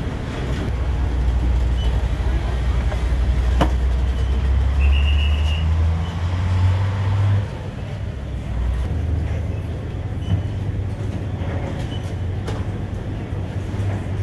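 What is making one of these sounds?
A crowd of people chatters nearby.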